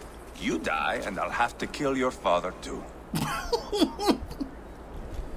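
A man speaks gruffly and threateningly.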